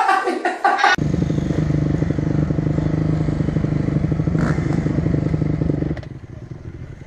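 A dirt bike engine drones steadily.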